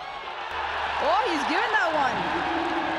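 A man shouts loudly in appeal.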